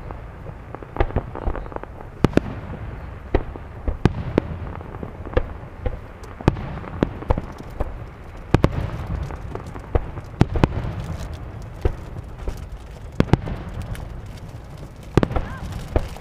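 Fireworks pop and crackle in the distance again and again.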